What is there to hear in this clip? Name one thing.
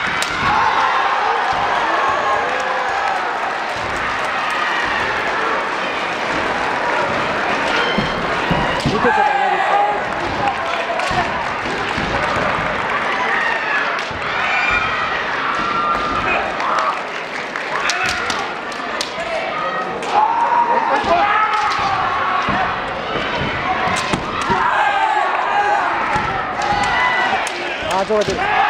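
Fencers shout loudly as they strike.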